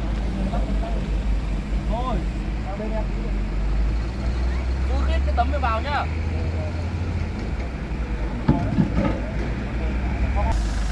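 Men call out to one another nearby.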